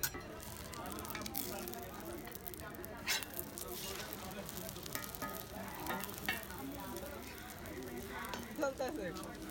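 Egg sizzles on a hot griddle.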